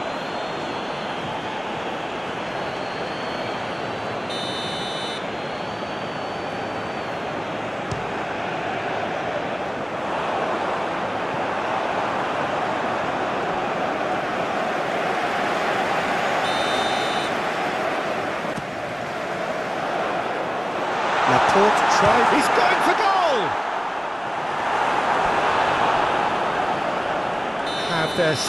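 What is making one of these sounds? A large stadium crowd roars steadily, swelling louder for a moment.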